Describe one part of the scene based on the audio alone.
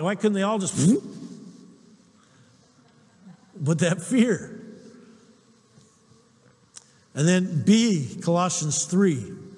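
A man speaks with animation through a microphone in a large echoing hall, pausing between phrases.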